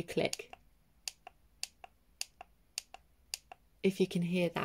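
Small plastic buttons click several times.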